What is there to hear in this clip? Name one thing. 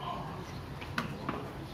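A cricket ball bounces on a hard tiled floor.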